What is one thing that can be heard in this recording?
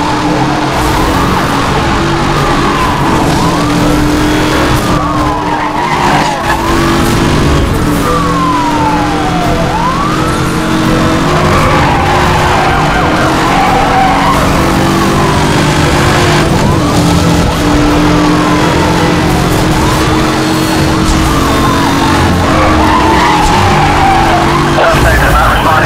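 Police sirens wail up and down nearby.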